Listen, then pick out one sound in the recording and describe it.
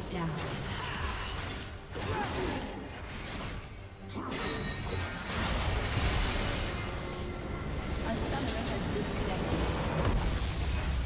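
Spell blasts and weapon hits clash rapidly in a fierce battle.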